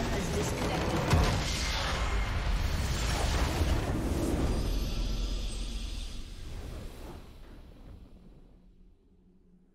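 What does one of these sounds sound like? A game battle crashes and bursts with magic blasts, then fades away.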